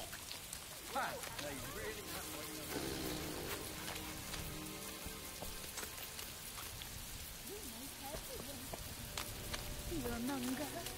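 Footsteps tread steadily on dirt and straw.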